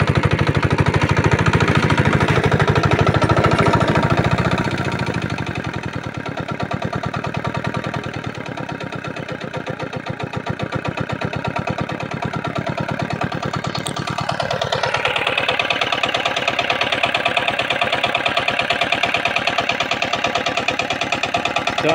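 A small diesel engine chugs steadily close by.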